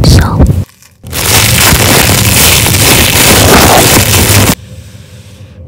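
Plastic wrap crinkles loudly, close up.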